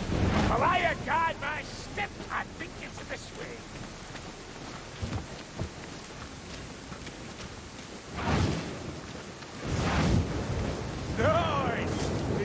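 A torch flame crackles and hisses.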